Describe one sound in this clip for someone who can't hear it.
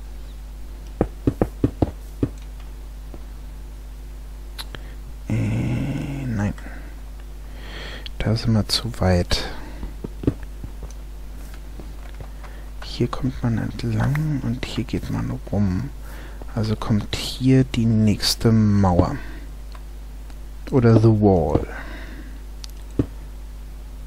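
Stone blocks are placed with short, dull knocks.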